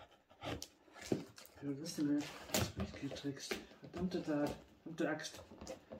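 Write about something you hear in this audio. Cardboard flaps rustle and scrape.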